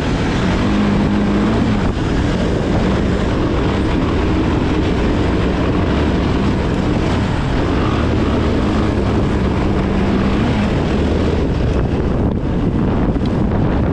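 An engine drones steadily nearby, its pitch rising and falling.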